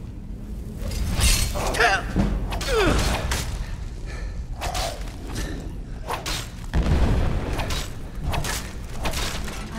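Metal blades clang and strike in a fight.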